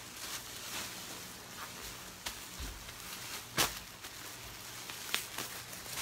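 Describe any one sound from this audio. Fabric rustles as clothes are moved.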